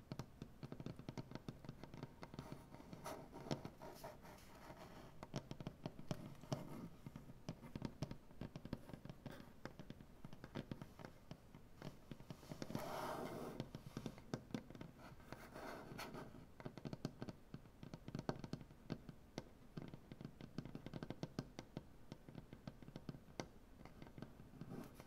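Fingertips rub and brush softly over wood.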